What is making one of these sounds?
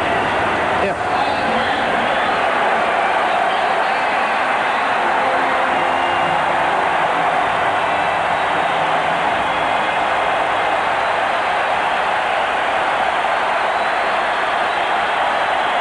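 A large stadium crowd murmurs and cheers steadily in the background.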